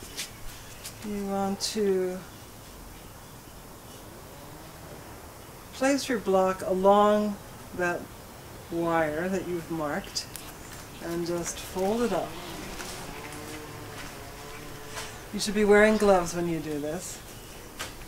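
A woman speaks calmly nearby, in short phrases with pauses.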